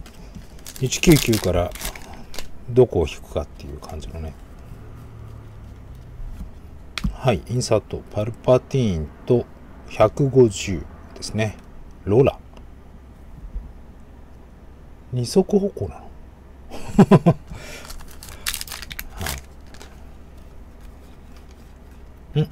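Trading cards slide and shuffle in hands.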